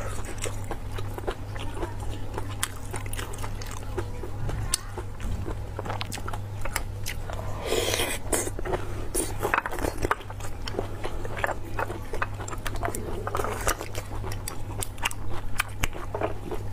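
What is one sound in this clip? Chopsticks click against shells.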